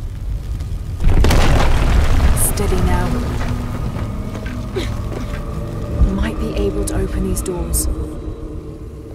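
Fire roars loudly nearby.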